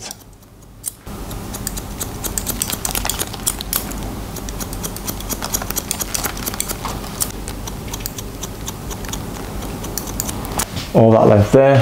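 Scissors snip through hair in quick, repeated clicks.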